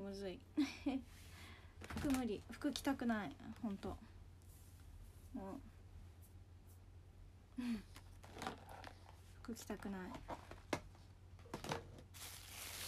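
A young woman talks casually and close to a microphone, in short bursts with pauses.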